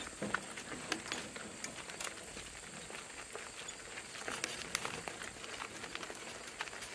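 Cart wheels crunch over gravel.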